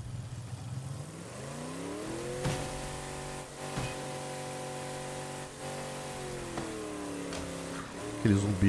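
A car engine revs up, hums steadily, then winds down.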